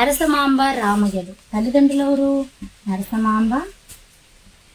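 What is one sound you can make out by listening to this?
A young woman reads out slowly and clearly, close by.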